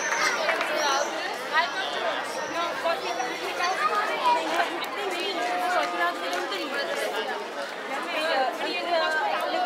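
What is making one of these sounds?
Young girls talk and laugh close by.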